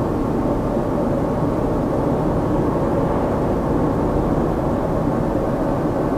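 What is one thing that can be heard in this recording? A car passes in the opposite direction.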